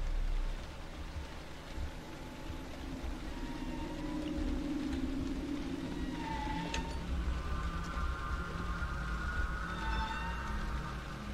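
A man talks quietly into a close microphone.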